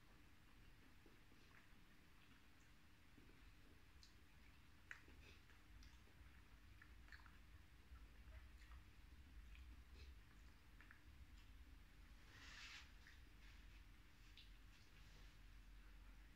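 Food squelches and crackles softly between fingers.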